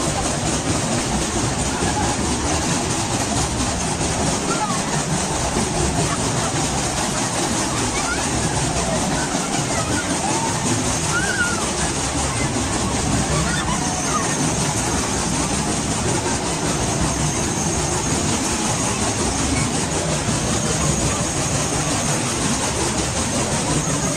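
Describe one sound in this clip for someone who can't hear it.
A crowd of riders chatters and calls out.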